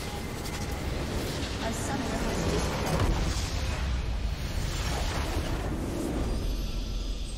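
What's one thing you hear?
A structure explodes with a loud rumbling crash.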